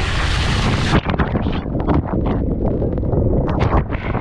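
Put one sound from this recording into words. Water rushes and splashes loudly down a slide.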